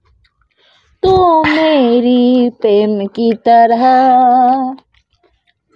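A man sings loudly in long, drawn-out notes.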